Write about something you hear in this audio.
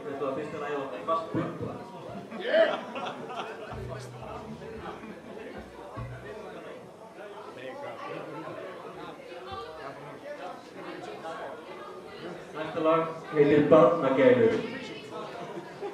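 A live band plays rock music in a reverberant hall.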